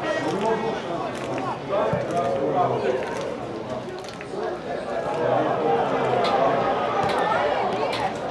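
A crowd of football fans chants and shouts from a stand outdoors.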